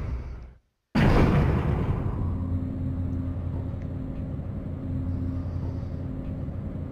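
An elevator hums as it moves.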